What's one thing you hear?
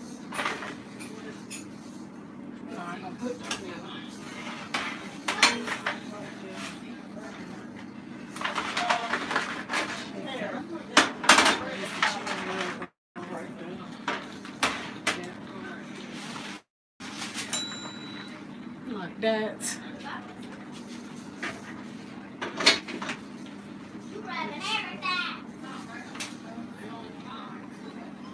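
Metal utensils clink and scrape against foil trays.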